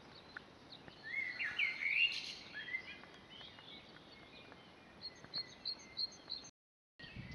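Birds chirp and trill in the trees nearby.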